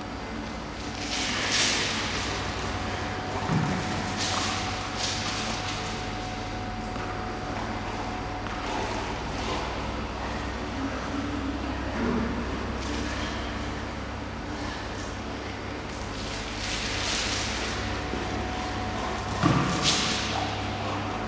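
A dog's claws patter and scrape across a hard floor in a large echoing hall.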